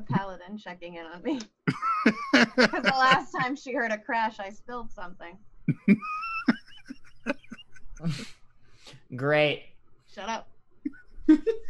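A young woman laughs loudly over an online call.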